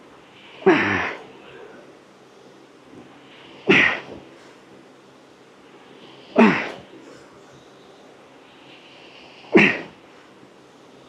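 A man exhales sharply with each heavy lift.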